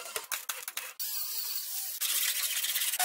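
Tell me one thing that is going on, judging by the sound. An angle grinder cuts metal with a harsh whine.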